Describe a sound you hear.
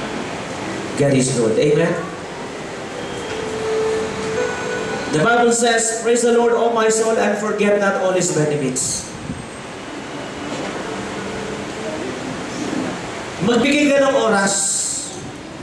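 A man speaks with feeling through a microphone in an echoing hall.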